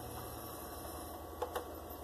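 A button on a game console clicks under a finger.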